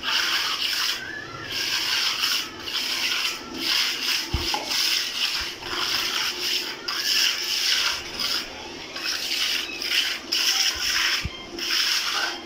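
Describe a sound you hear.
A trowel scrapes and smooths wet cement in repeated strokes.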